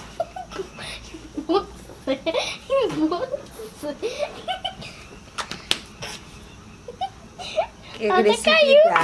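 A woman laughs loudly and talks with animation close by.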